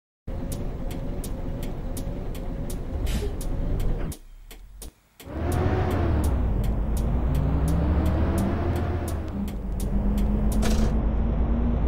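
A bus turn signal ticks.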